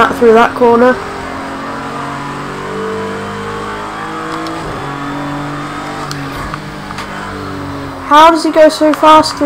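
A race car engine roars steadily, rising sharply in pitch and loudness as it revs hard.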